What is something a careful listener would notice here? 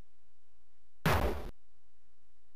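A short, harsh electronic hit sound bursts out and quickly fades.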